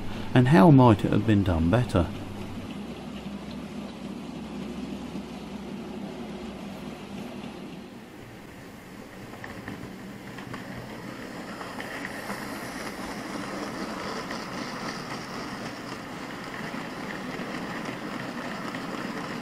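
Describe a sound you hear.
Model train wagons rattle and click steadily along the track.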